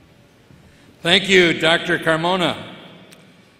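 A man speaks calmly into a microphone over loudspeakers.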